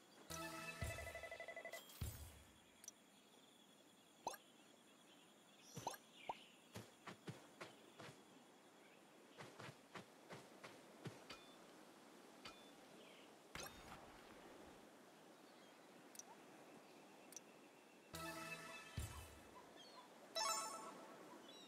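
A cheerful game jingle plays.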